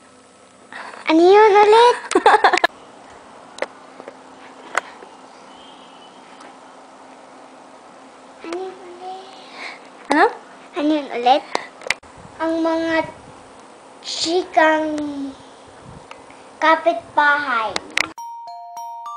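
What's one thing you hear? A young girl sings close by, breaking off now and then.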